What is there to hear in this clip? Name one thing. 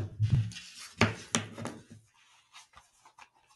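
A plastic cable plug taps and clicks against a headset.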